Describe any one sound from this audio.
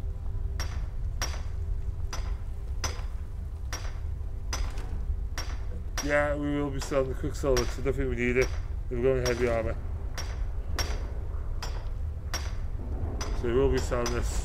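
A pickaxe strikes rock with sharp, ringing clinks.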